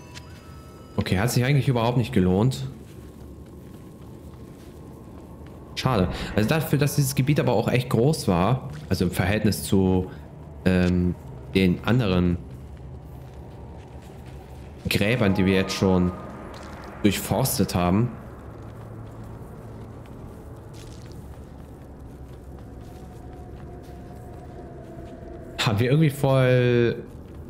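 A young man talks casually into a close microphone, in short bursts.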